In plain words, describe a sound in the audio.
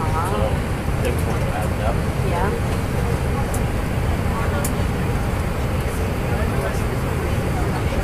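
A man talks nearby in a low voice.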